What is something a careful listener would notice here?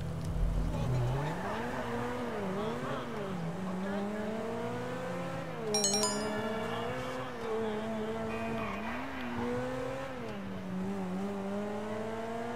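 A sports car engine hums and revs up and down as the car drives.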